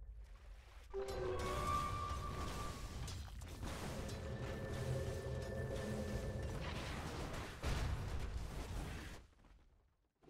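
Fighting sounds clash and crackle in a video game battle.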